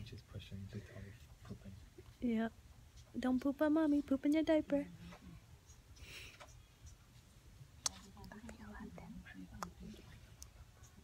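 A young woman speaks softly and warmly close by.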